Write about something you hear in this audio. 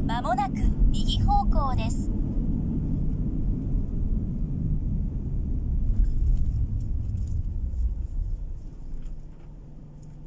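A car rumbles along a road as it drives.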